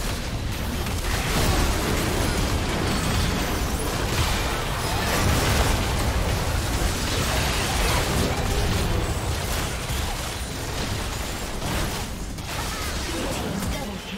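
Magic spells blast and crackle in a fast, noisy fight.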